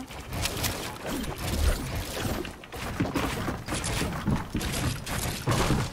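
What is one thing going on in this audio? A pickaxe chops rapidly at wooden walls.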